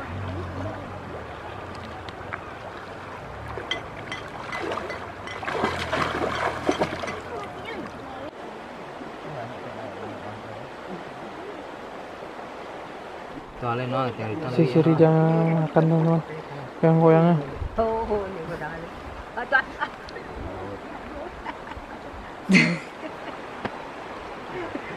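A shallow river flows and ripples over stones.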